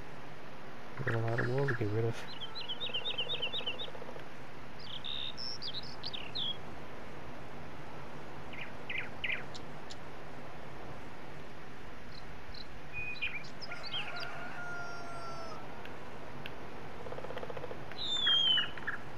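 Chickens cluck now and then.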